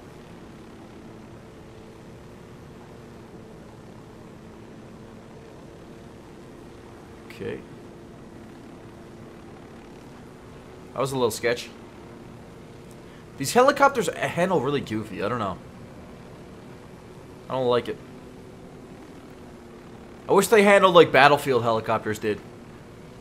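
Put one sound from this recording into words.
A helicopter's rotor hums steadily.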